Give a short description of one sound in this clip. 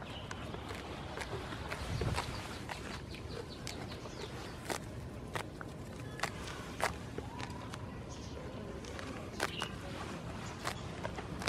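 A goat tears and chews at short grass close by.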